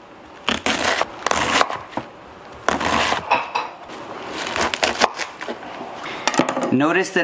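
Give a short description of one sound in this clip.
A knife chops quickly through cabbage on a wooden board.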